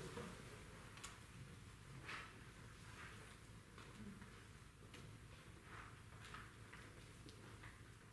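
A choir sings together.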